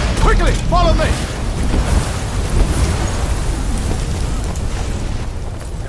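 A deep rumble of fire and battle rolls on steadily.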